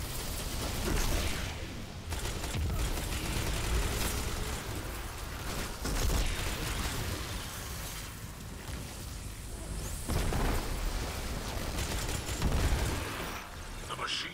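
Rapid gunfire bursts loudly and repeatedly.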